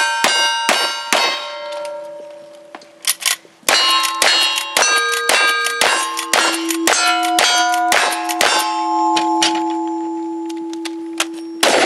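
Steel targets ring with a clear, lingering clang after hits.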